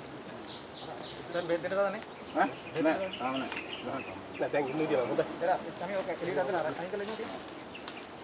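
Several men talk with animation close by.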